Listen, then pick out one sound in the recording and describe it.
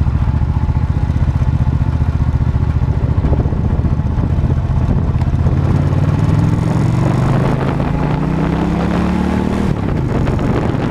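A motorcycle engine hums and rises in pitch as it speeds up, then drops as the gear changes.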